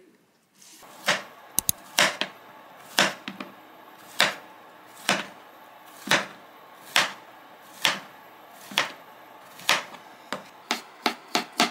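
A knife chops through a zucchini on a cutting board with steady, sharp knocks.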